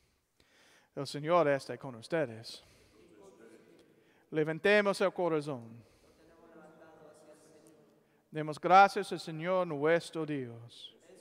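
A man sings a chant into a microphone in a large echoing hall.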